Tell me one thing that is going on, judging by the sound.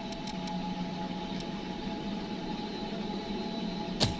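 A soft menu click sounds as a selection changes.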